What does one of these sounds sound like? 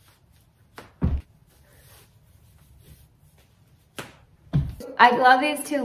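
Feet thump on a wooden floor.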